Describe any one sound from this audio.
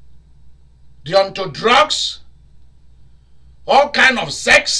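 A man speaks loudly and expressively into a microphone.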